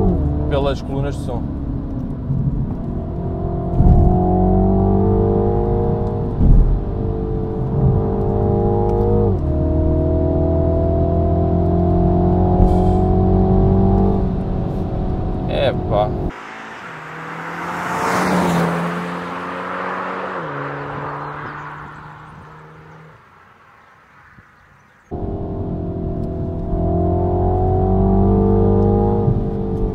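A car engine revs loudly and shifts through gears.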